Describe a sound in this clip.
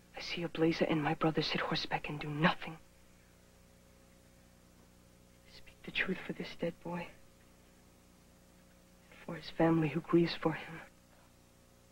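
A young man speaks earnestly and close by, in short phrases with pauses.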